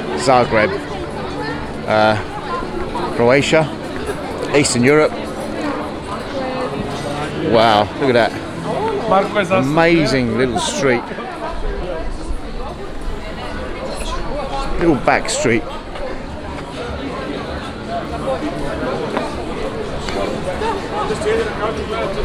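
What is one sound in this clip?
Footsteps tap on a cobbled street.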